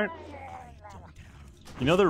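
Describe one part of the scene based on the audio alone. A blade strikes a creature.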